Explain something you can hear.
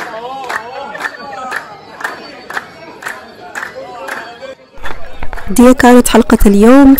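A group of people clap their hands in a steady rhythm.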